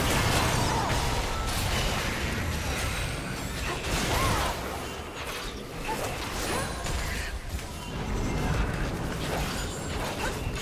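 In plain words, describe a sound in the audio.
Spell effects whoosh and crackle in a busy fight.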